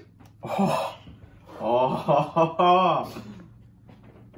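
A young man talks and laughs close by with animation.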